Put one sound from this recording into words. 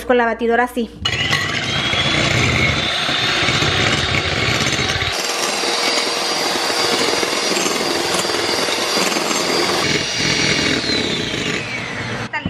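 An electric hand mixer whirs steadily, beating in a glass bowl.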